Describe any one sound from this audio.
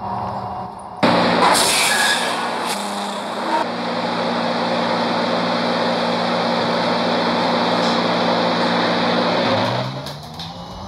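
A bus engine hums steadily at idle.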